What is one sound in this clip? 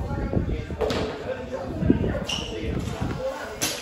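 A dumbbell thuds on the floor.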